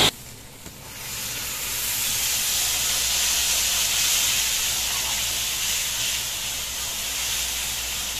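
A thick paste sizzles as it is poured into a hot pan.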